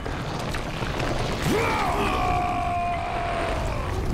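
A giant roars deeply in pain.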